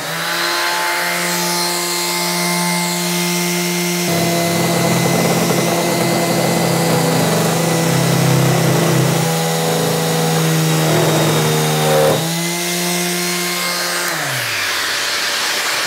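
An electric sander hums and whirs steadily.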